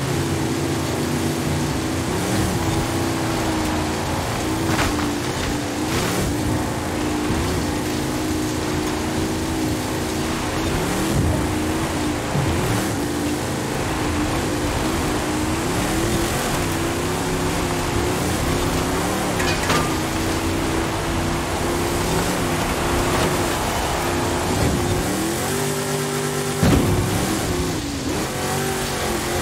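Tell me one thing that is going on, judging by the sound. A truck engine roars steadily, rising and falling in pitch as gears shift.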